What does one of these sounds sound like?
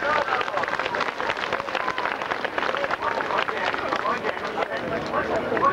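A large crowd claps outdoors.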